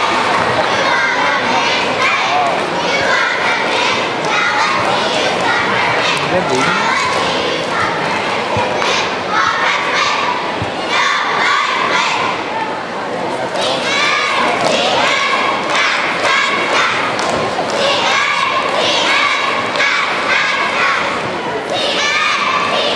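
A group of young women shout a cheer together in a large echoing hall.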